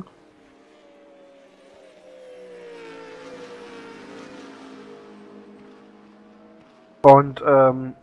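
A race car engine whines at high revs.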